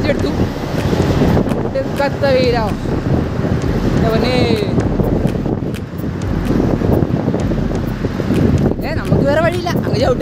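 Wind buffets the microphone loudly outdoors.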